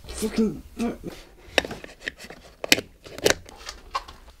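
A plug clicks into a wall socket.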